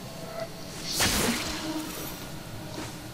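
Blades slash and clang in sharp bursts.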